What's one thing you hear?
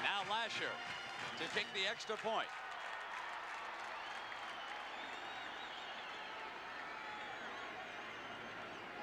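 A stadium crowd cheers and murmurs outdoors.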